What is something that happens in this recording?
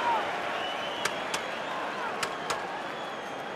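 A few fans clap sharply nearby.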